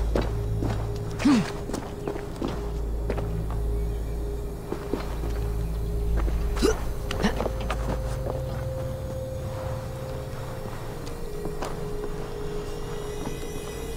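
Hands scrape and grip on rock and bark while climbing.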